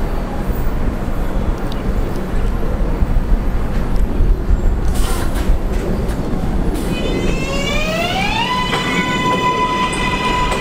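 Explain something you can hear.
A subway train rumbles and clatters on the tracks.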